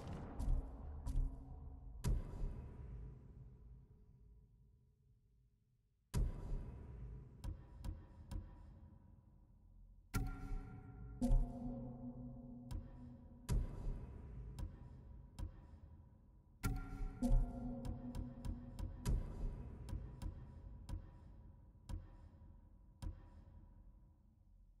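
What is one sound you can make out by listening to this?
Soft menu clicks and chimes tick as selections change.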